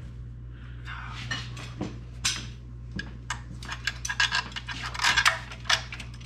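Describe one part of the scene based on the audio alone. Metal parts click and rattle as a hand works on an engine.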